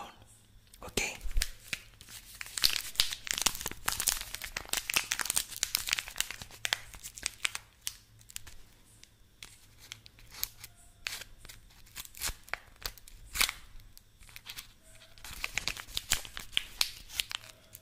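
A soap wrapper crinkles close to a microphone.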